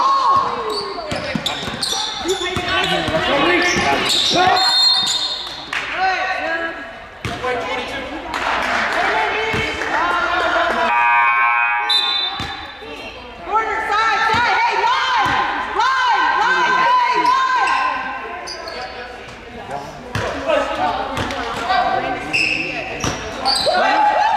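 A basketball bounces on a wooden floor with hollow thuds.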